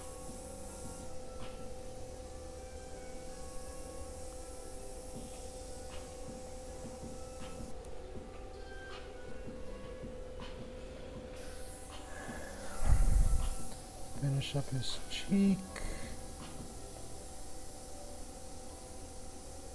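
An airbrush hisses softly as it sprays paint in short bursts.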